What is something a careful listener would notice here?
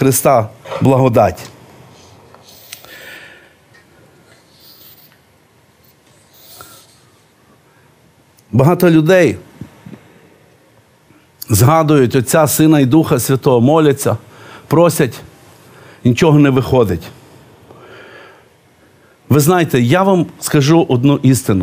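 A middle-aged man speaks calmly into a close microphone, pausing often.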